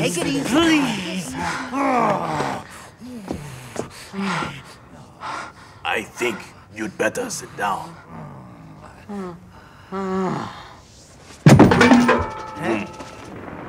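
Several men talk over each other excitedly.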